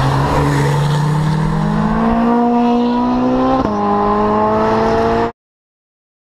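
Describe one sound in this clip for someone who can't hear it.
A Ferrari 458 Speciale V8 accelerates hard, its revs climbing.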